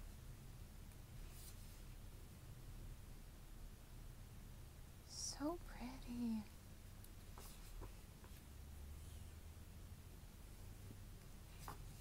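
Stiff paper pages rustle and flap as a book's pages are turned.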